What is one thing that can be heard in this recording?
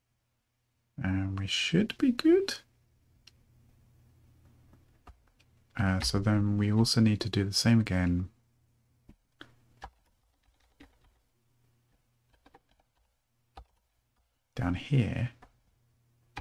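A man speaks calmly and close into a microphone, in short bursts with pauses.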